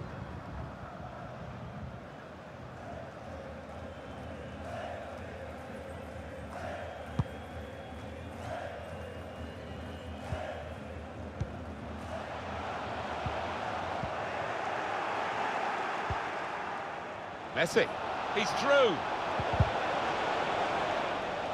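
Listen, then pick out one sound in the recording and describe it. A stadium crowd roars and murmurs steadily, growing louder.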